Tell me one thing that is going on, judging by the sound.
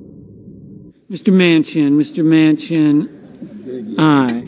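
A man reads out loudly through a microphone.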